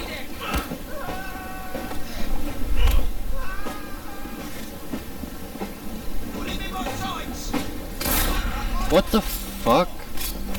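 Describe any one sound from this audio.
Fists strike a body in a scuffle.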